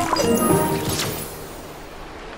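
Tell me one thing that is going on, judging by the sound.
A bright musical chime rings out and fades.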